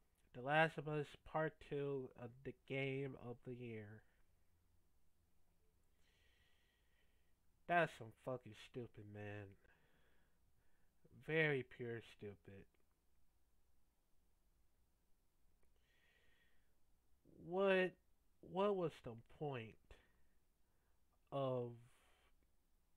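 A young man talks into a headset microphone with animation, in short bursts.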